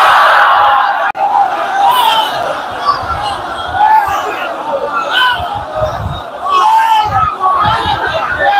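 A crowd of men chants along loudly.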